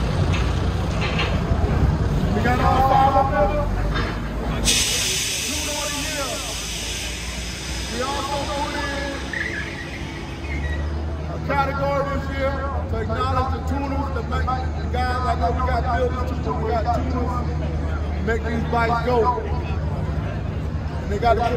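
A man speaks with animation into a microphone, heard through a loudspeaker outdoors.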